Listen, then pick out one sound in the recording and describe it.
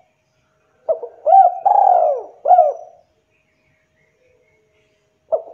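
A spotted dove coos in a short, rolling phrase.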